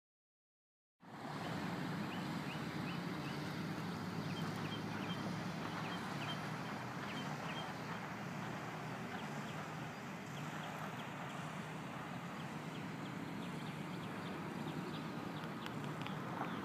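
Wind blows steadily across an open space outdoors.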